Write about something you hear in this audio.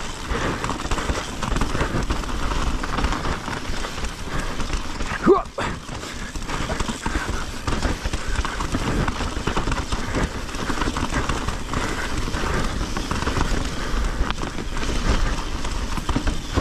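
Bicycle tyres roll and crunch over a rocky dirt trail.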